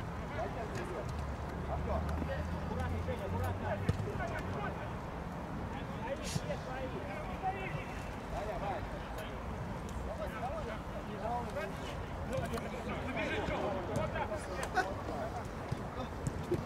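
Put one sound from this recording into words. Men shout to each other from a distance across an open field.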